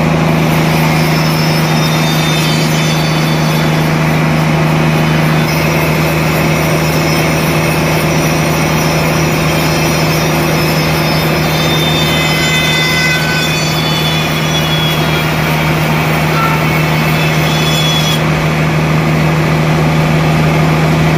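A band saw cuts through a large log with a loud, steady whine.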